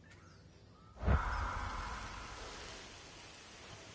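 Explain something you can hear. Thunder cracks loudly and rumbles away.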